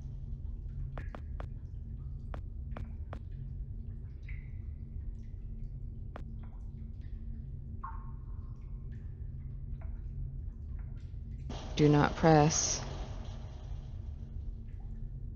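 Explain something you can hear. Footsteps tap lightly on a hard floor.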